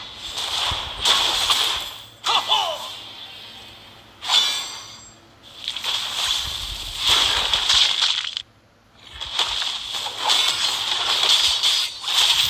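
Game weapons clash and strike in quick blows.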